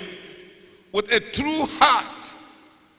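A man preaches loudly into a microphone in a large echoing hall.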